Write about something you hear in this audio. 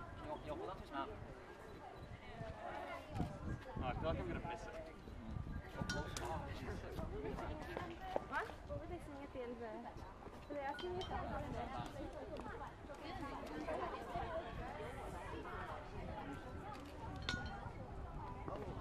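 Young people chatter and laugh nearby, outdoors.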